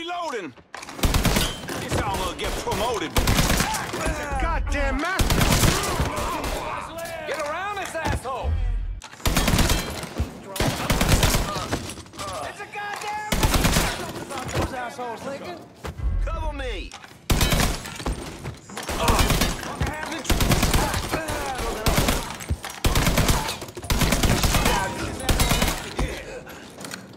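A rifle fires in loud rapid bursts, echoing in a large room.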